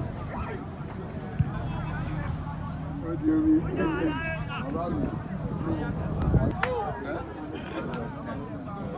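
A crowd of men and women chatter outdoors nearby.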